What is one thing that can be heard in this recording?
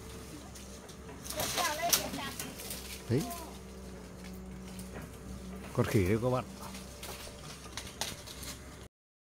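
Leaves and branches rustle and snap as a person climbs through brush.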